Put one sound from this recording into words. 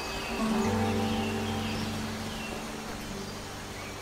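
A waterfall rushes nearby.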